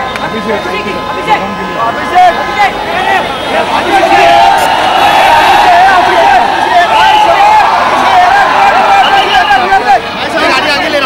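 A large crowd of men cheers and shouts excitedly close by.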